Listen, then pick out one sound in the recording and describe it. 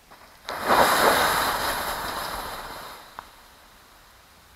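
A jet of smoke hisses and roars, then slowly fades.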